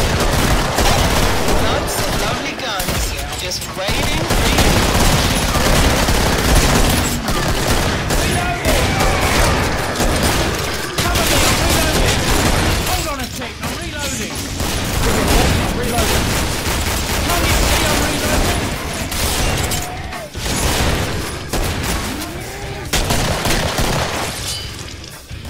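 Gunshots fire rapidly and echo down a corridor.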